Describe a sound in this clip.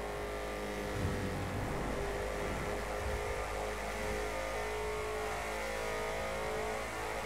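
A hot rod's engine echoes inside a tunnel.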